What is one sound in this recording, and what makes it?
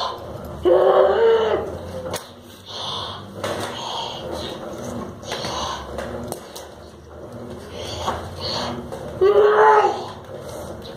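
A young child makes loud playful roaring sounds nearby.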